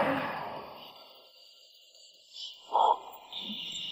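A handbag drops onto pavement with a soft thud.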